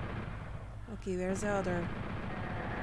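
A young woman speaks briefly into a close microphone.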